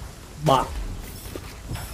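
A gun fires in quick blasts.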